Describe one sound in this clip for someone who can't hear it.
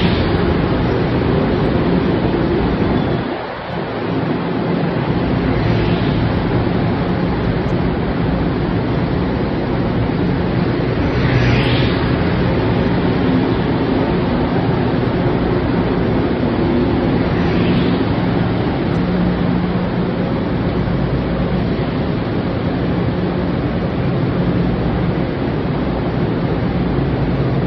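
A train rumbles steadily past along the platform, echoing in a large underground hall.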